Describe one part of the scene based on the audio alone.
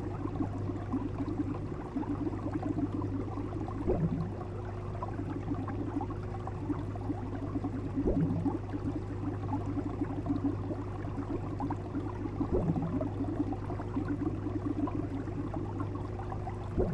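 Water bubbles and gurgles steadily in a fish tank.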